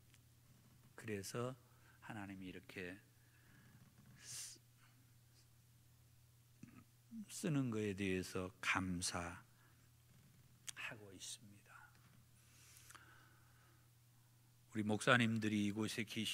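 A middle-aged man speaks slowly and earnestly into a microphone, with long pauses.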